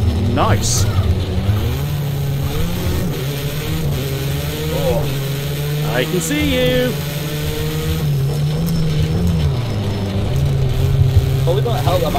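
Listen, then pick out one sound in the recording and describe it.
A racing car engine roars steadily, rising and falling in pitch with gear changes.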